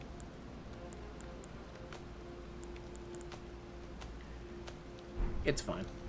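Menu clicks tick softly.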